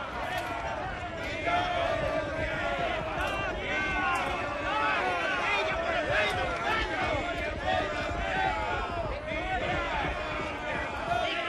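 Several men shout and cheer outdoors.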